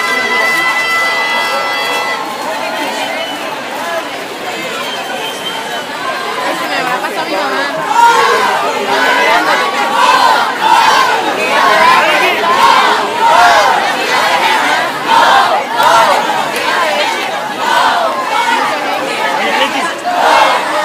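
A large crowd murmurs and talks outdoors.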